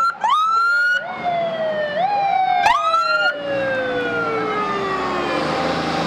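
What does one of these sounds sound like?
A fire truck horn blares in loud blasts.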